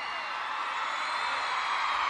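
A man shouts loudly on a stage.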